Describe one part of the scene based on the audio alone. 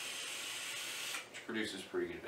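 A man inhales deeply from a vape with a soft hiss.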